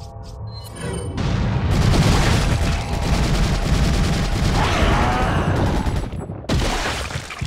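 A flamethrower roars loudly in bursts.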